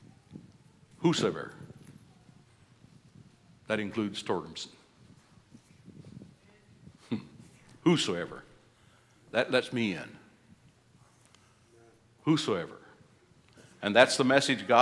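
An older man speaks through a microphone in measured bursts, with pauses.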